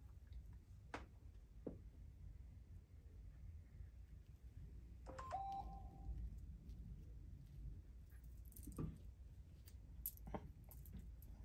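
Scissors snip through hair with soft clicks.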